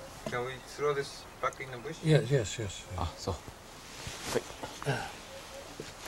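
An elderly man speaks quietly.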